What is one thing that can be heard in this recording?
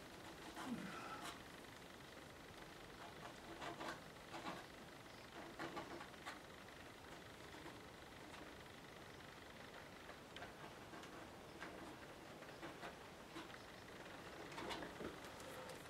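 A plastic card scrapes across watercolour paper.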